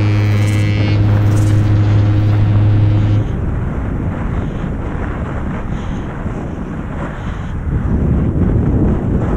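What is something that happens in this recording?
Wide bicycle tyres crunch over packed snow.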